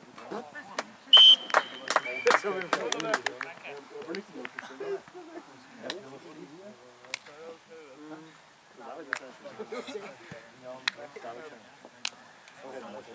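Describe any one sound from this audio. Hands clap in celebration.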